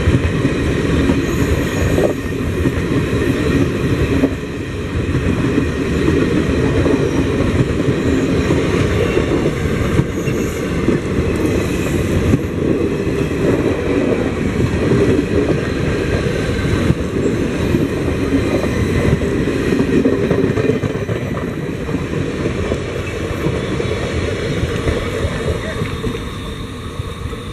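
A train's wheels squeal against the rails.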